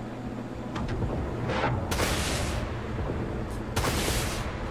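Laser guns fire in bursts with whooshing blasts.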